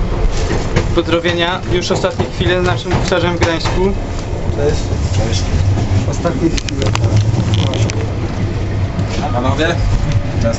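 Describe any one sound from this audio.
Young men talk and laugh close by.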